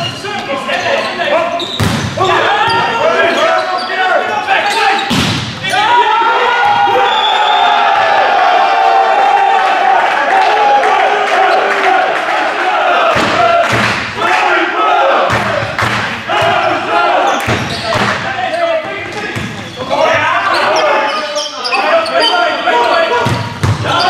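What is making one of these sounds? A crowd cheers and chants loudly.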